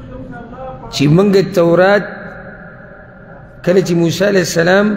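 A man speaks with animation into a microphone, in a reverberant room.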